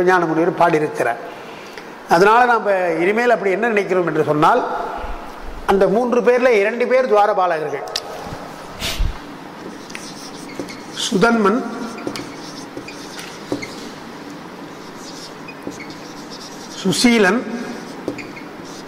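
An elderly man chants in a melodic voice through a microphone, in short phrases with pauses.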